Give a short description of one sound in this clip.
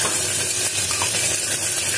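A spatula scrapes against a metal pot.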